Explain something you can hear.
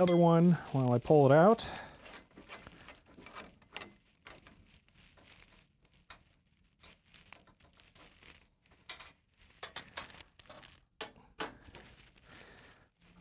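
Wires rustle and click softly.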